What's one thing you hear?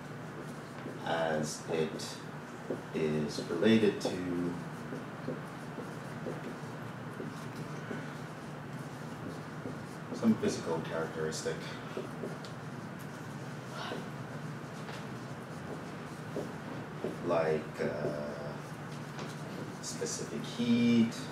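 A man speaks calmly, explaining.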